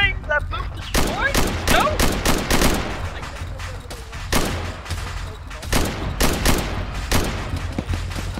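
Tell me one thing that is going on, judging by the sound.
Gunshots crack nearby in quick bursts.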